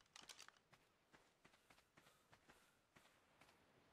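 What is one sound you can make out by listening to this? Footsteps rustle softly through leafy undergrowth.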